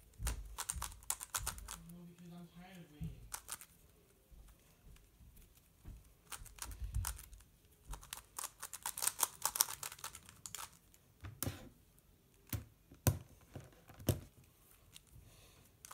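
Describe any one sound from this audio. Plastic puzzle pieces click and clatter rapidly as a twisting puzzle is turned by hand.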